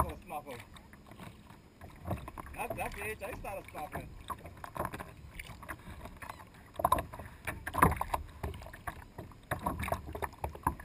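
A paddle splashes and dips into water close by.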